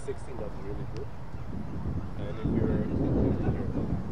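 A cricket bat strikes a ball with a sharp knock in the distance.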